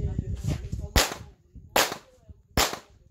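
A pistol fires several sharp, loud shots outdoors.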